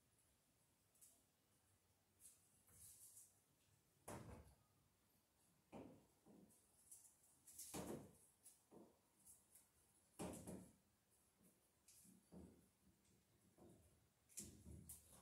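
Metal tools clank and knock sharply against pipes.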